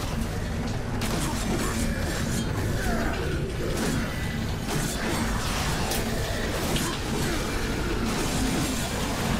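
Blades clash and strike hard in a fast fight.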